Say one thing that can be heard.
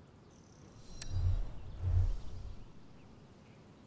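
A racing car engine revs in two short bursts.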